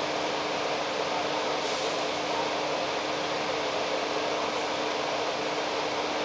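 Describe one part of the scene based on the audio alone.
A tram rattles past close by.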